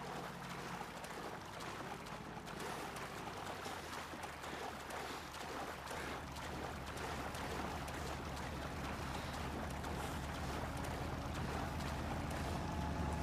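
A boat engine hums steadily, growing louder as it nears.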